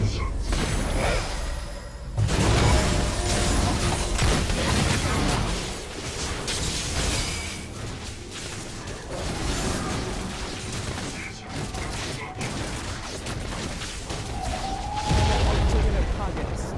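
Fantasy video game combat effects burst and clash.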